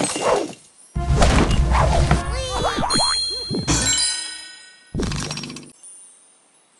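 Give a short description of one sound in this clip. Game music and chimes play.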